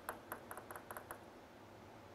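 A ping-pong ball bounces several times on a table with quick light taps.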